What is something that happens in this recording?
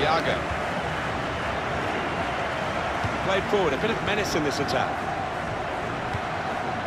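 A stadium crowd roars steadily.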